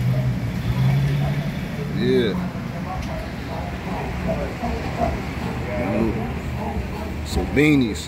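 A car engine idles nearby with a low steady hum.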